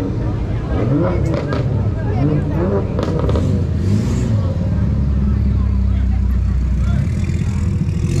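A sports coupe rolls slowly past.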